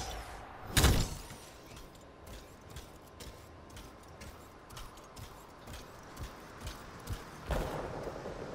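Armoured footsteps thud softly on the ground.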